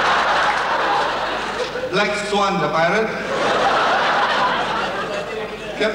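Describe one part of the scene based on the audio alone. A large audience laughs.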